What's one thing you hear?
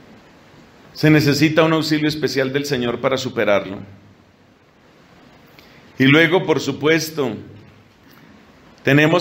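A middle-aged man speaks calmly into a microphone in pauses.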